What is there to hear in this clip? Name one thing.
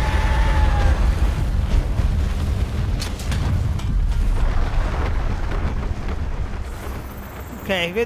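Sand churns and rumbles deeply as a huge creature burrows.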